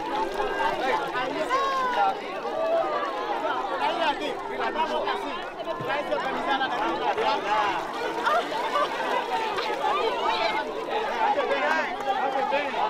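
A large crowd of children chatters and calls out loudly nearby, outdoors.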